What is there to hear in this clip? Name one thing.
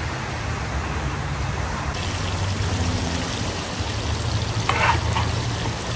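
Liquid bubbles and churns at a hard boil in a large pot.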